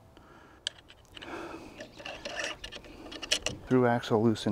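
A bicycle wheel rattles and clicks as it is handled.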